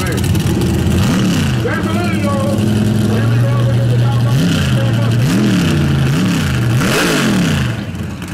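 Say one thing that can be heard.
A race car engine revs up sharply again and again.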